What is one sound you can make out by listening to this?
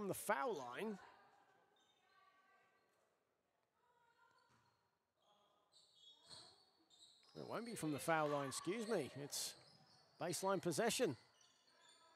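Young women shout loudly across an echoing sports hall.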